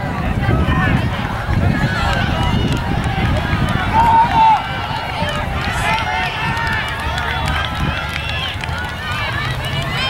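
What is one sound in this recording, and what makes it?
A crowd of young people shouts and cheers nearby outdoors.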